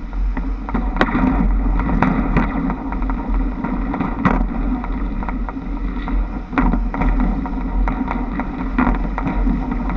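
Trolley poles click and clatter against overhead wires.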